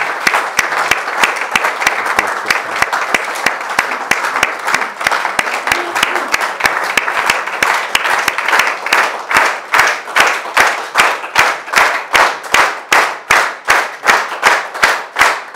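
An audience applauds, the clapping growing into a steady, rhythmic beat.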